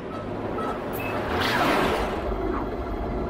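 A spaceship's drive engages with a rising whoosh.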